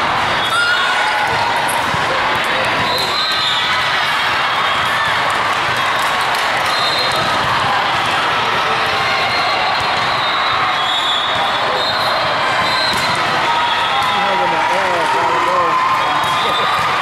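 A crowd of voices chatters and echoes through a large hall.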